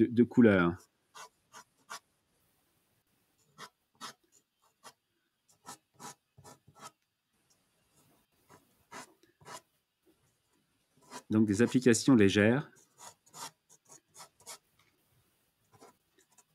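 A dry pastel scratches and rubs across paper.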